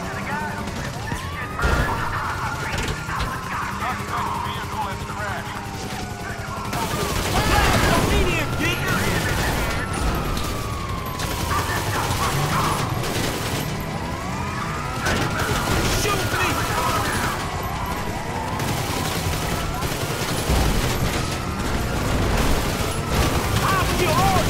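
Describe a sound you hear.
Police sirens wail, rising and falling.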